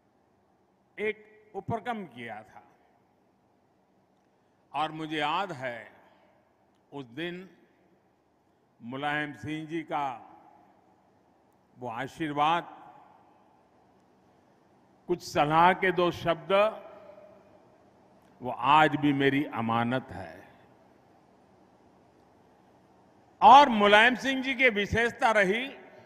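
An elderly man speaks forcefully into a microphone in short bursts with pauses.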